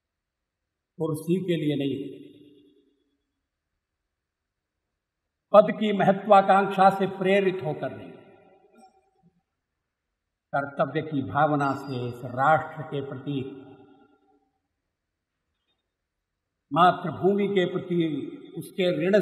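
An elderly man speaks forcefully into a microphone, in phrases with long pauses between them.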